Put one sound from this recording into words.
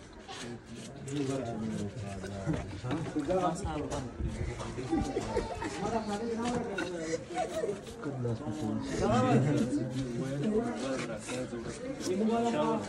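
Men talk nearby in a lively way.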